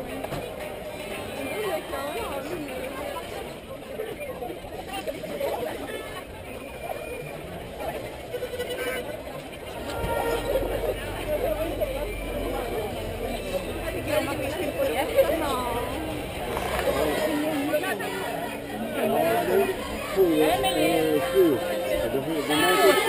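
A crowd of young women chatter and call out loudly outdoors.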